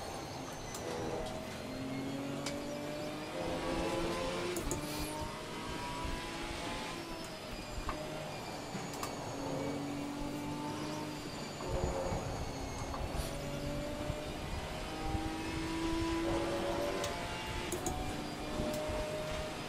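A race car engine revs hard and drops in pitch with each gear change.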